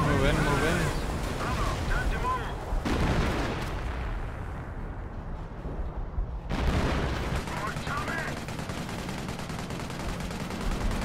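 Gunfire crackles and rattles in a battle.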